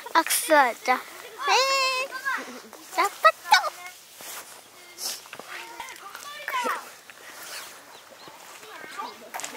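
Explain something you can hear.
A young child speaks in a high voice nearby.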